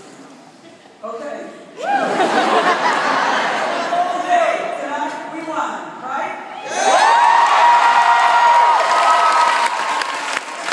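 A large crowd chants and shouts loudly in an echoing hall.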